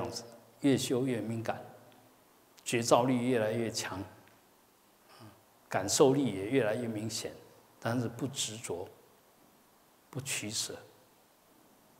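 A man speaks calmly and slowly into a close microphone, with pauses between phrases.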